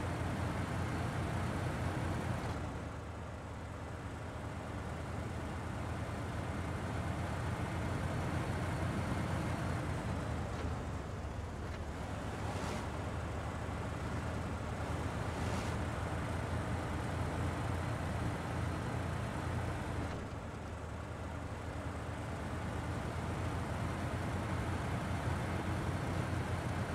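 Tyres crunch through snow and slush.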